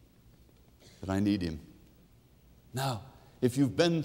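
A middle-aged man speaks expressively into a microphone, close by.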